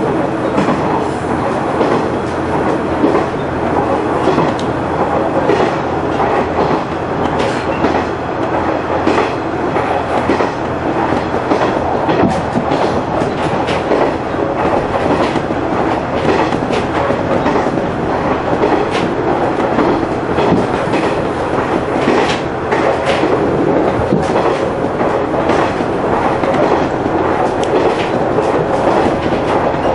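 Train wheels clatter rhythmically over the rail joints.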